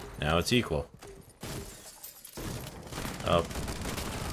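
Glass shatters as a window breaks.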